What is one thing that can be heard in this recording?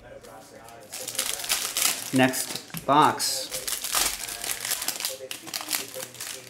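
Foil card packs crinkle and tear open.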